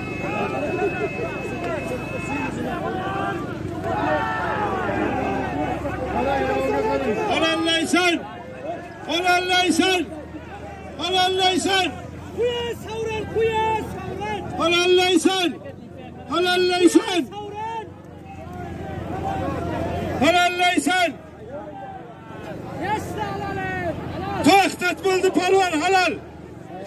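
A large crowd of men chatters and shouts outdoors.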